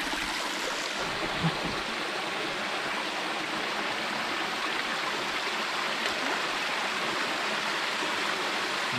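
A small waterfall splashes steadily into a pool.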